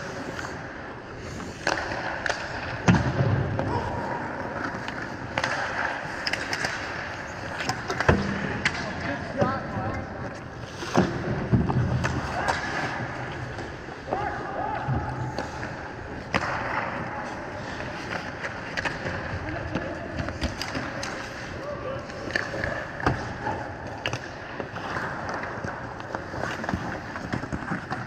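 Skate blades scrape and carve on ice in a large echoing rink.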